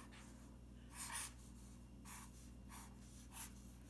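A marker squeaks in short strokes on paper.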